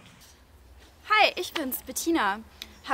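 A young woman speaks cheerfully close by.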